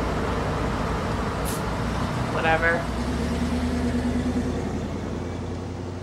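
A car pulls away and drives off.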